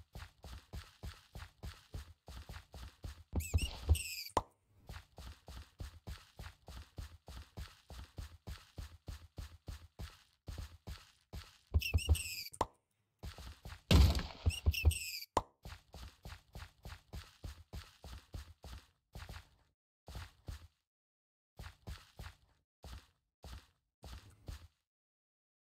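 Footsteps thud steadily on dirt.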